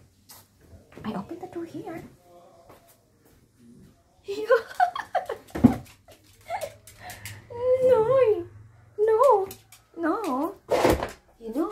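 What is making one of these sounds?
A small dog whines and yelps up close.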